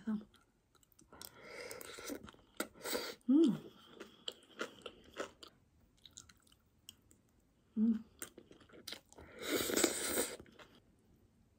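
A person chews food close up with wet, smacking sounds.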